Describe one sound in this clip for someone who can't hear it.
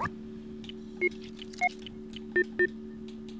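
Keypad buttons beep in short tones.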